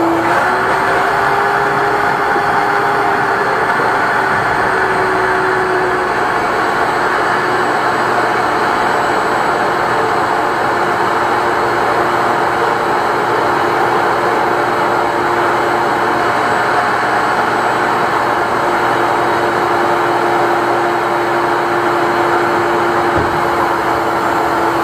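A pressure washer motor runs with a steady, loud whirring hum.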